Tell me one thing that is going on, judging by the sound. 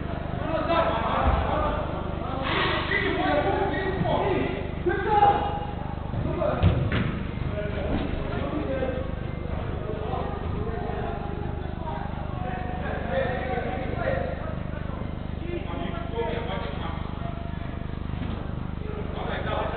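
Men shout and call out to each other across a large echoing indoor hall.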